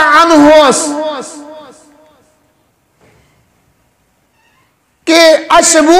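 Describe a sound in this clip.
A man speaks forcefully into a microphone, his voice echoing in a reverberant room.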